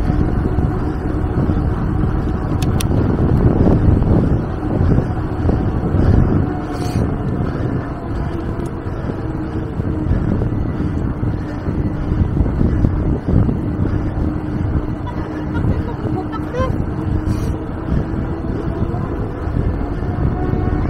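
A bicycle's tyres hum on a paved road.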